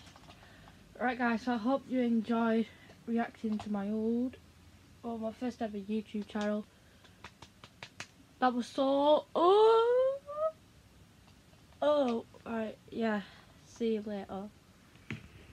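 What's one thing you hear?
A young girl speaks close up, lively and expressive.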